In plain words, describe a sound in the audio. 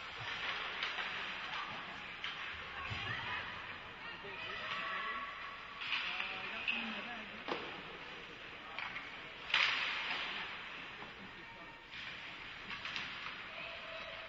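Hockey sticks and a puck clack against the ice.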